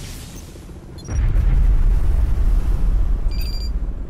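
Electricity crackles and sizzles in short bursts.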